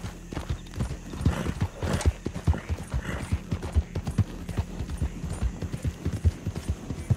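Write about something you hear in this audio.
A horse's hooves thud quickly on a dirt path.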